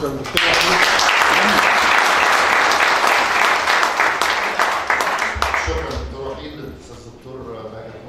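An audience applauds loudly in a room, then the applause fades.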